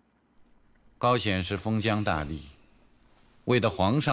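A man speaks calmly and firmly nearby.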